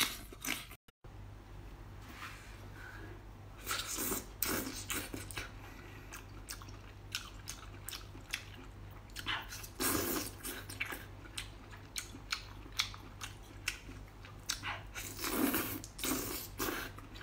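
A woman chews crisp fried shrimp close to a microphone.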